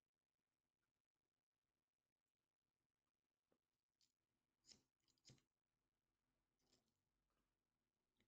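Cards shuffle softly in a woman's hands.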